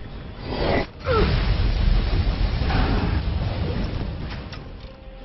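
A dragon breathes a loud rushing blast of icy wind.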